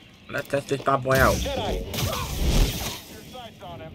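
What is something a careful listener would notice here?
Blaster shots crack and are deflected with sharp zaps.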